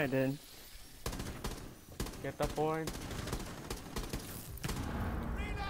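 A rifle fires in quick bursts of sharp shots.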